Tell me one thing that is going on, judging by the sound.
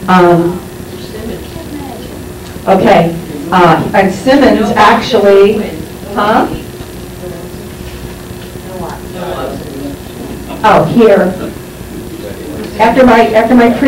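A woman speaks through a microphone and loudspeaker in a room, pausing often.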